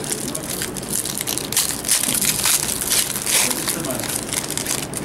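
A foil wrapper crinkles and tears as it is opened.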